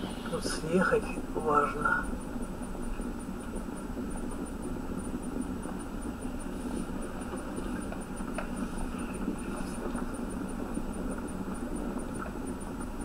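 A car engine hums steadily as the car slows down on the road.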